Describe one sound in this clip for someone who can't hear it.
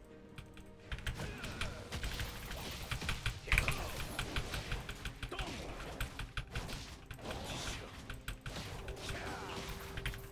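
Game combat effects clash and whoosh.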